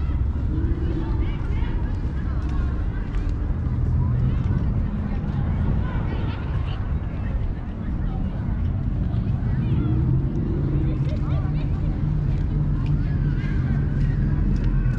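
Young men and women chatter faintly in the distance.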